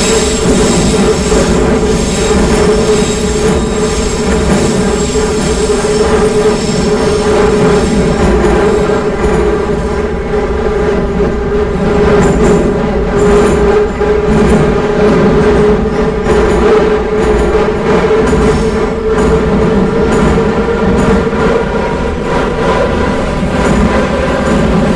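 A subway train rumbles and hums steadily through a tunnel.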